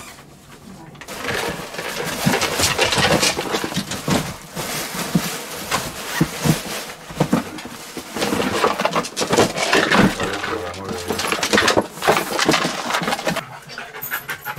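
Hands rustle through leather handbags and packaging.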